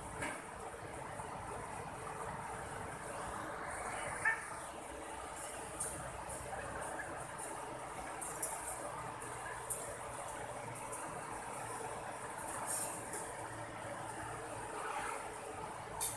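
A shallow river rushes steadily over rocks outdoors.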